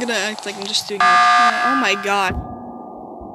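An alarm blares loudly.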